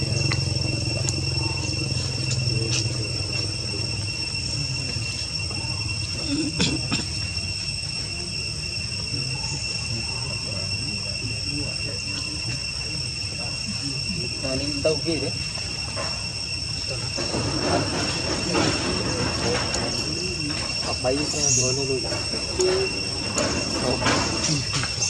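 A baby monkey suckles with soft smacking sounds.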